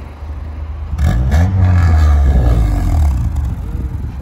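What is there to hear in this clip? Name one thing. A car engine revs loudly and roars.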